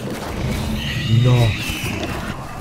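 A creature growls loudly.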